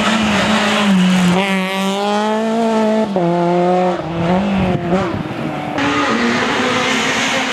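A rally car engine revs hard and roars past, its pitch rising and dropping with each gear change.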